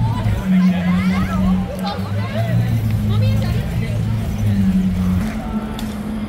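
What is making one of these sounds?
Young men and women chat nearby outdoors.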